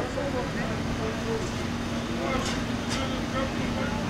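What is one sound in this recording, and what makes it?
Several men talk outdoors at a distance.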